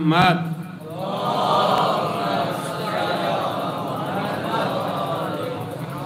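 An elderly man speaks steadily into a microphone, heard through a loudspeaker.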